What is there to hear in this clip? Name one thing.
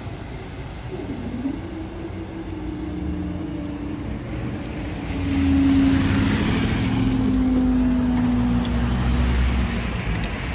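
A level crossing barrier hums as it rises.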